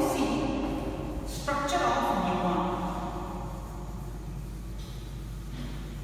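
A cloth wipes chalk off a board.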